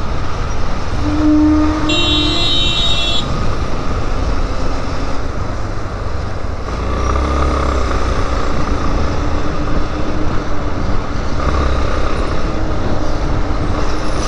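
A motorcycle engine hums steadily up close while riding.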